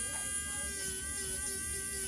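An electric nail drill whirs with a steady high whine.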